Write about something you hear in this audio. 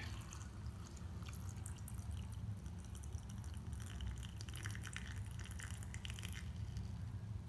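Water pours into a glass with a bubbling splash.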